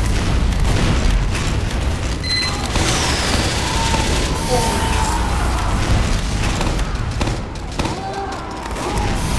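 Explosions boom loudly and heavily.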